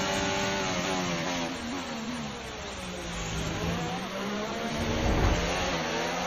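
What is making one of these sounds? A racing car engine drops in pitch as the car brakes hard, then revs up again.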